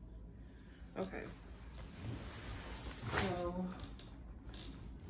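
Hands rustle through hair.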